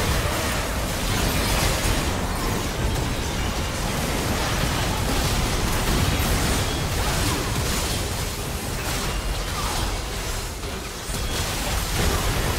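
Magic spells and blasts crackle and boom in rapid succession.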